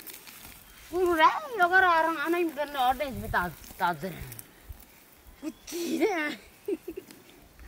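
A young child calls out in a high voice nearby.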